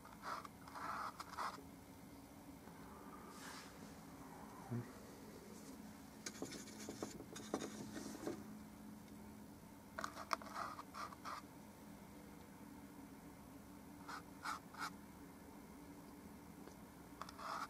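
A paintbrush softly strokes paint onto a canvas.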